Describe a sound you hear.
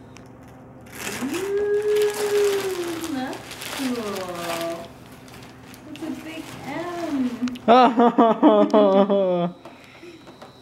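A woman speaks and laughs warmly nearby.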